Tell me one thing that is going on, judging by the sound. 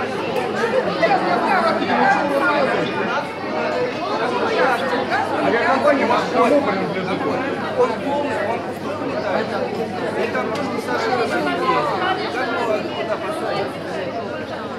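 A crowd of men and women talk over one another, loud and agitated, close by in a large echoing hall.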